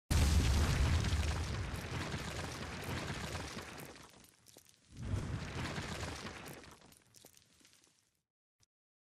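Rock crumbles and crashes with a deep rumble.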